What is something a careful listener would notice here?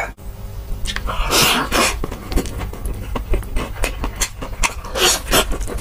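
A young man bites and chews crunchy fried chicken.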